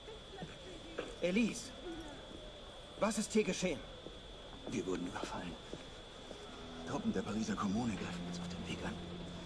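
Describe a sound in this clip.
A young man speaks urgently and close.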